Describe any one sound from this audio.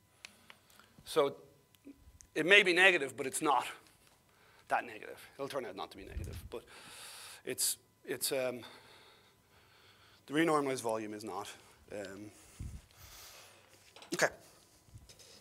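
An elderly man lectures calmly through a microphone in an echoing room.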